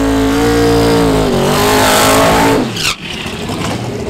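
Tyres screech and squeal as they spin on the track.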